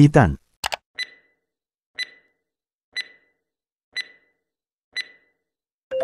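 A countdown timer ticks once a second.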